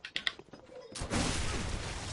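A gunshot blasts nearby.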